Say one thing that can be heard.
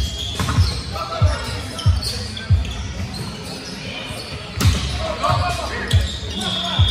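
Men shout and call out during play in a large echoing hall.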